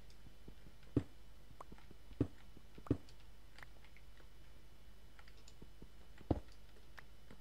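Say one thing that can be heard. A pickaxe strikes stone blocks in a computer game.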